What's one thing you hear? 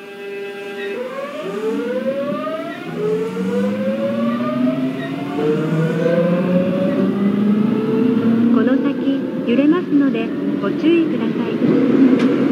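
An electric train motor whines, rising in pitch as the train speeds up.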